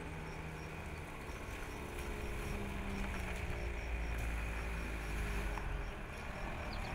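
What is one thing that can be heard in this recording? A van engine rumbles nearby as it drives slowly closer.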